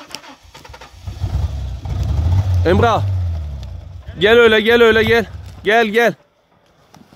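An engine revs with a deep rumble.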